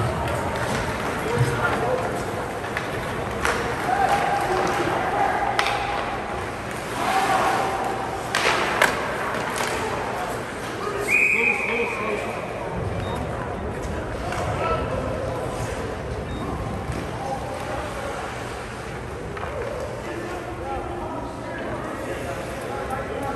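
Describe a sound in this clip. Ice skates scrape and carve across the ice in an echoing rink.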